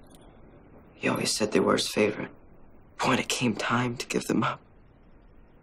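A boy speaks softly nearby.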